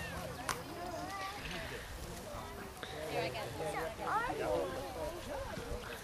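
Children chatter excitedly nearby.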